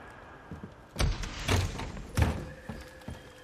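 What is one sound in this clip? A wooden door bangs open.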